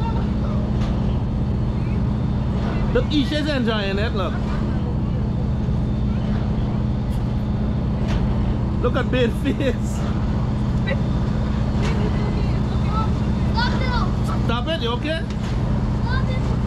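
A ride's motor hums steadily.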